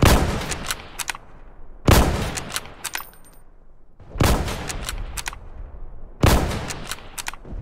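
A rifle fires loud, booming shots with a short echo.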